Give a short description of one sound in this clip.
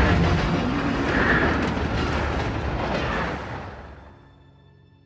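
A steam train rumbles along with steam hissing loudly.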